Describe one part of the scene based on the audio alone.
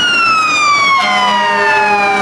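A fire truck's horn blasts briefly.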